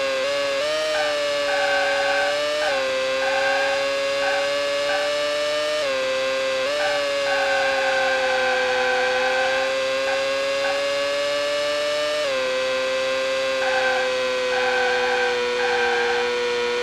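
Tyres squeal in bursts through the corners.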